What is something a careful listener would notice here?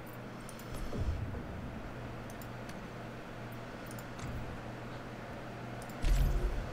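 Soft interface clicks sound as menu tabs are selected.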